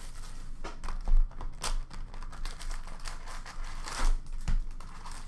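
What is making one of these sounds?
Hands rustle trading card packs and a cardboard box.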